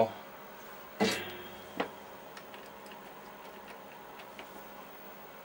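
A plastic test probe clicks softly as it is handled.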